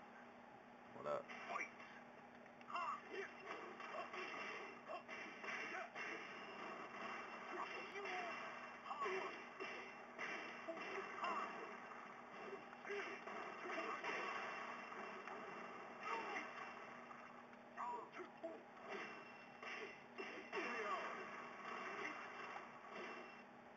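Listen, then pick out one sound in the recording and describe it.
Punches and kicks thud in a fighting game, heard through a television speaker.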